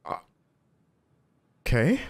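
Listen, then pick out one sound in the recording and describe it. A young man speaks briefly, close to a microphone.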